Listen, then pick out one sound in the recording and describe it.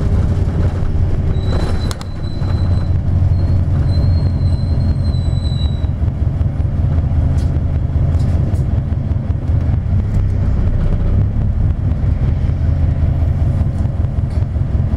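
A vehicle engine hums steadily with road rumble, heard from inside the vehicle.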